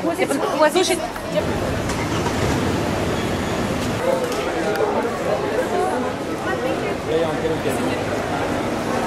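A crowd chatters outdoors on a busy street.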